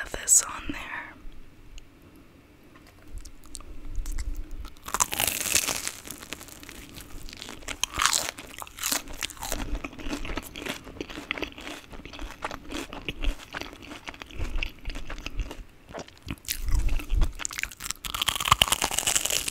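A plastic wrapper crinkles close to a microphone.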